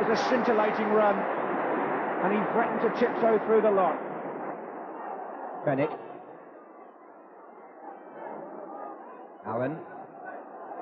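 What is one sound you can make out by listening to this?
A large stadium crowd roars and cheers, then quiets.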